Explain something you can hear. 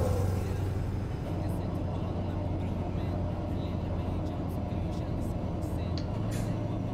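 Tyres roll and hum on the road.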